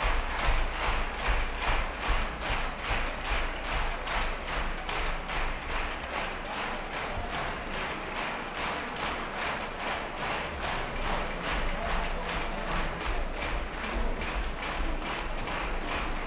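An audience claps in a steady, rhythmic beat in a large echoing hall.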